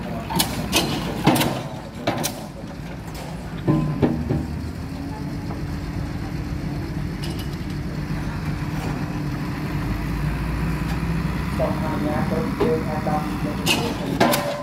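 A large diesel engine rumbles steadily nearby, outdoors.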